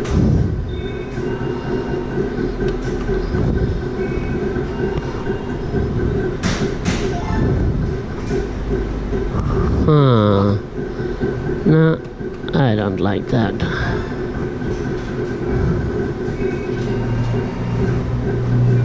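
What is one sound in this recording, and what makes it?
A gaming machine plays electronic music and beeps.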